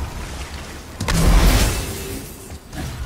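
A burst of crackling sparks erupts with a bang.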